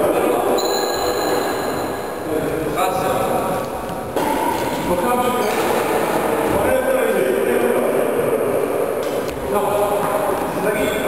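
Young men talk and call out to each other in an echoing hall.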